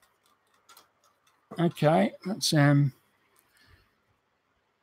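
Plastic model parts rattle softly as hands handle them.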